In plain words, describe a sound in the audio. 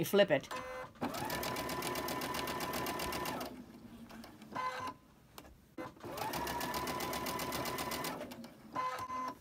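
A sewing machine stitches in quick steady bursts.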